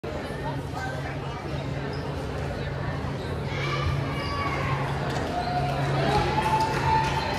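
Young girls chatter and call out in a large echoing gym.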